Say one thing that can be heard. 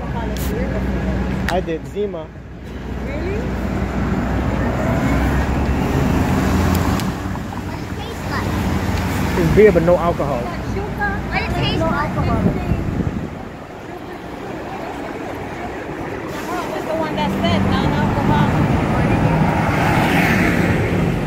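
Traffic rumbles along a busy street outdoors.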